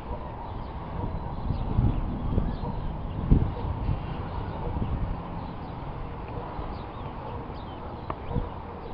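Wind blows in gusts outdoors.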